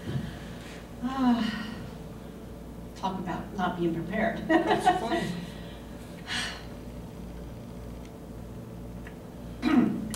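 A woman speaks cheerfully to a room, heard from across the room.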